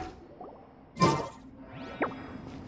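A magical blast bursts with a crackle.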